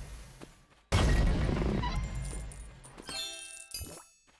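Wooden objects smash apart with a loud crash.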